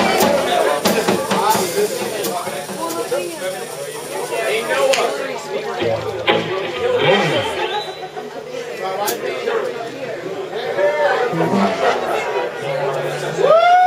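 Electric guitars play.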